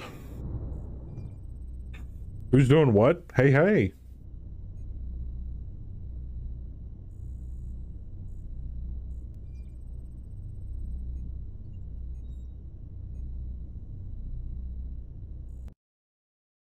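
A heavy machine rumbles low and steady.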